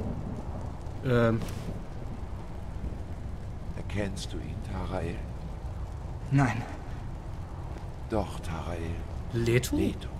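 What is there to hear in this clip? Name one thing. A man speaks into a close microphone in short bursts.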